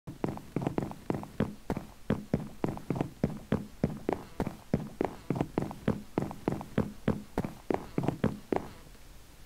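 Footsteps thud quickly and steadily on wooden boards.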